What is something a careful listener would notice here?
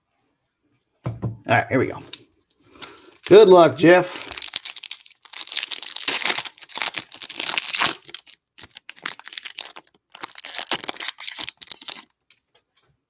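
Foil wrapping crinkles and tears as a pack is opened by hand.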